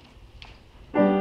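A choir starts singing together in an echoing hall.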